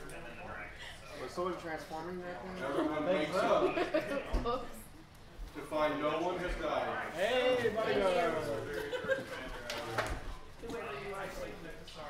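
Several people murmur and talk quietly in the background.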